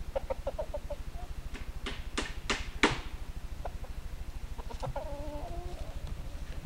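A hen clucks softly nearby.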